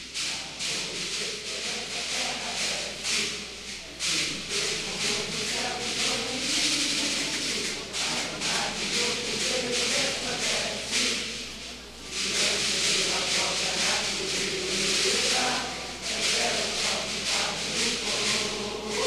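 Plastic shakers rattle in quick bursts.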